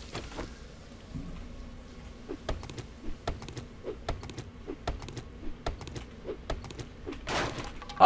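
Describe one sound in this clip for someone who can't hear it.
An axe chops into wood with sharp knocks.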